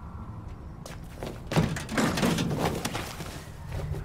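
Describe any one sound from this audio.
A man climbs onto a metal bin with a clattering thud.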